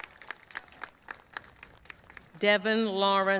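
A few people in a crowd clap.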